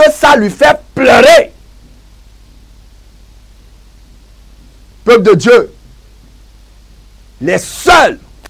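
A man speaks forcefully into a close microphone, in short bursts with pauses.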